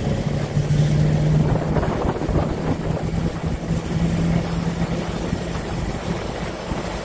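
Tyres roll over asphalt.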